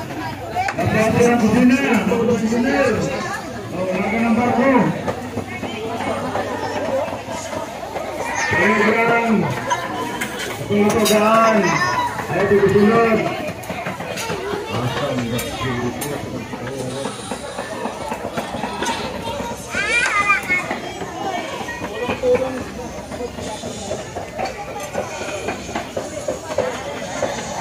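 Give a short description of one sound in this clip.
A crowd chatters outdoors nearby.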